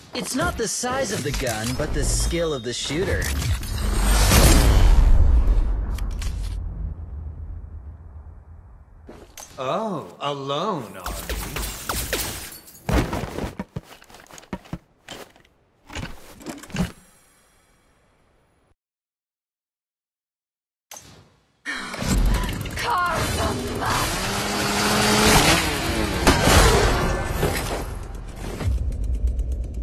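Game character sound effects swoosh and clang.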